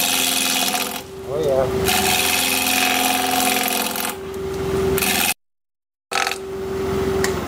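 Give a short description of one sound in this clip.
A chisel scrapes and hisses against spinning wood in loud bursts.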